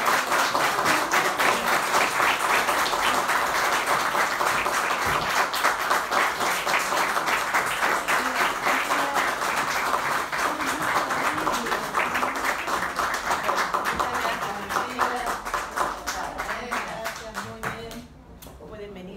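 An audience applauds loudly in an echoing room.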